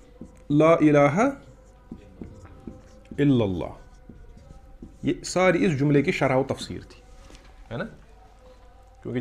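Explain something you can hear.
A man speaks calmly and with pauses.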